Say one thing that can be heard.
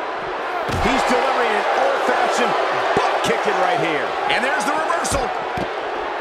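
Heavy thuds of bodies hit a wrestling ring.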